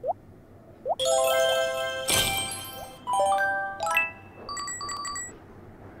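A bright chiming jingle plays in rising notes.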